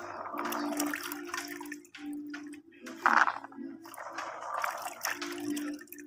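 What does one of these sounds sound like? Water splashes and drips as hands lift bulbs from a bucket.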